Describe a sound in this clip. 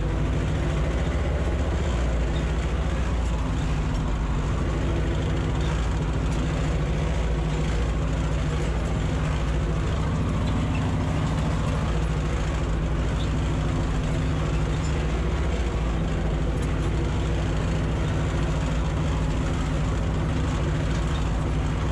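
A tractor's cab rattles as it drives over bumpy ground.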